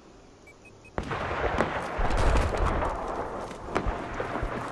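Gunfire and explosions rumble through a noisy battle.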